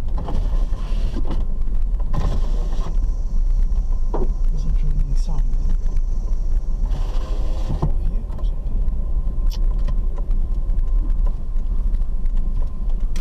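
A car's engine rumbles steadily while driving.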